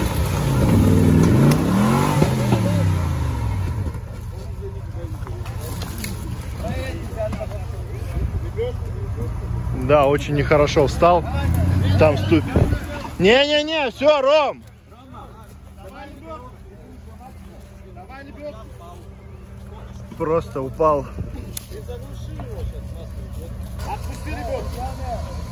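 An engine roars and revs hard as an off-road vehicle climbs.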